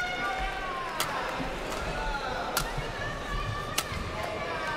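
A shuttlecock is struck back and forth with sharp pops in a large echoing hall.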